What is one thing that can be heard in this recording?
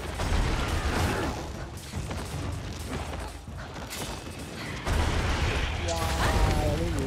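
Blades slash and strike with sharp impacts.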